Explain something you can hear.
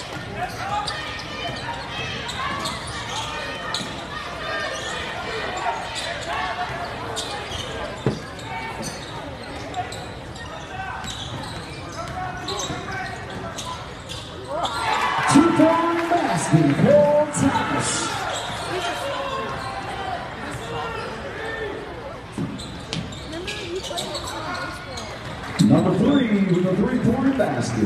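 A crowd of spectators murmurs and chatters in a large echoing gym.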